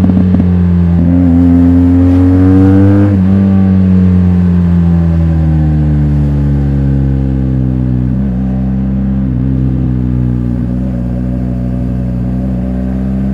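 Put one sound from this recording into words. A motorcycle engine hums steadily and close, revving up and then easing off.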